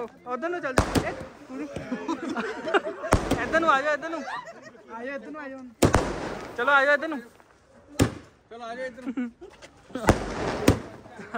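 Fireworks bang loudly overhead.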